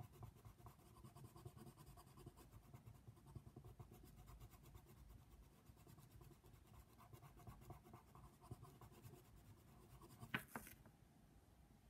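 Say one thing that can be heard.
A coloured pencil scratches rapidly on paper up close.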